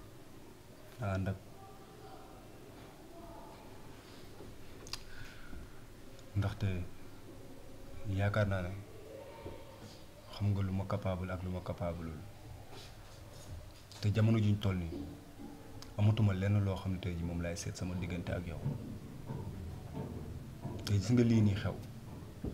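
A young man speaks quietly and earnestly, close by.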